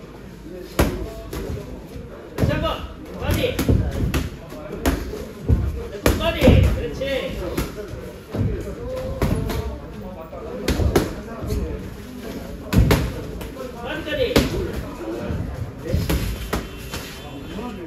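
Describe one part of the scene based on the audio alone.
Boxing gloves thump sharply against pads in quick bursts.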